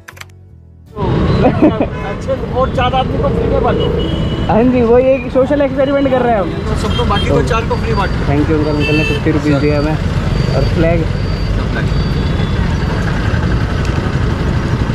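A middle-aged man talks from inside a car, close by.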